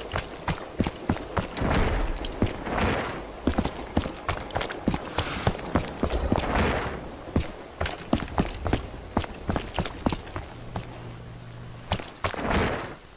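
Footsteps run quickly over a hard floor.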